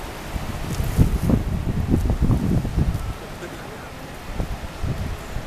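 Wind gusts and buffets outdoors.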